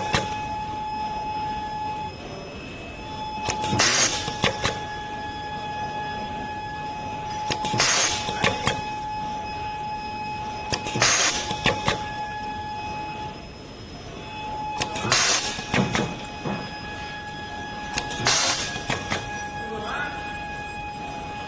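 A machine hums with a steady whine.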